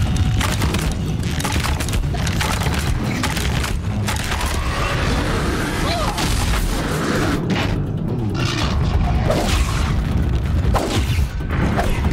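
Weapon strikes clang and thud against metal.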